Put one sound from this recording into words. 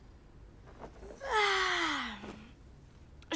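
A boy yawns loudly and long.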